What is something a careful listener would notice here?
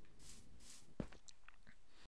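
A block thuds softly as it is placed.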